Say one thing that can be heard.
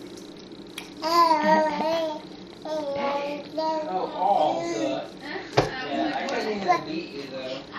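A baby coos and babbles close by.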